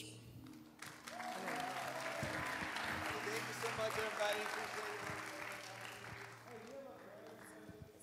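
An audience applauds and cheers.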